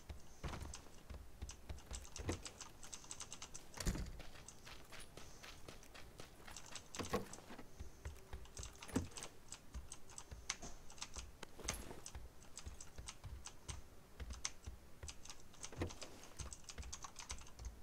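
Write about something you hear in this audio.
Footsteps thud on hard floors in quick succession.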